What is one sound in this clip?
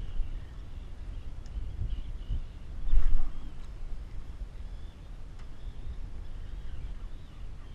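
Choppy water laps against a plastic kayak hull.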